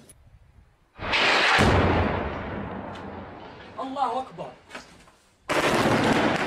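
An explosion booms outdoors and echoes away.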